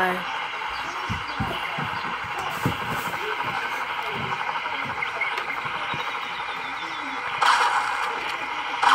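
A game helicopter's rotor whirs steadily.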